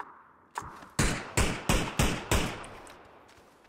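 Gunshots fire in quick succession, echoing.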